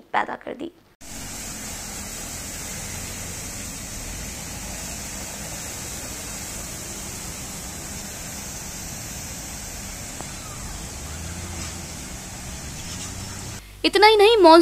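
Water splashes and rushes as vehicles drive through a flood.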